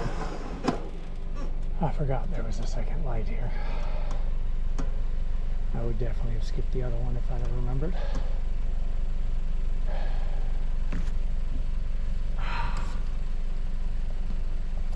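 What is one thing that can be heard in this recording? A car engine idles quietly nearby.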